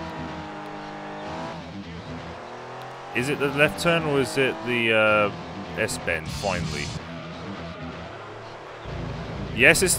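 A car engine revs and roars as the car speeds up through its gears.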